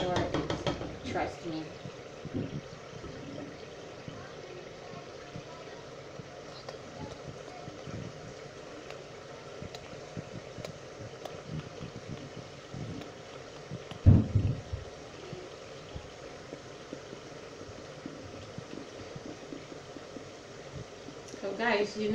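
A pot of thick sauce bubbles softly as it simmers.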